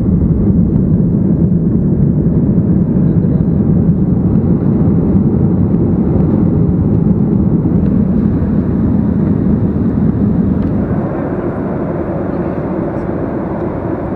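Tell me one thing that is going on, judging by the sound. Jet engines roar steadily in an airliner cabin.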